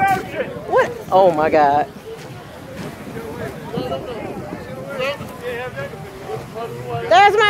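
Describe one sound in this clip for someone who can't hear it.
A woman talks excitedly close by, outdoors.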